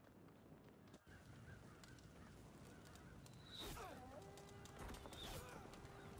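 Swords clash in a distant battle.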